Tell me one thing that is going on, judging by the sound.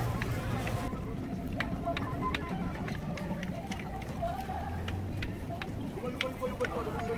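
Metal utensils clink at a food stall.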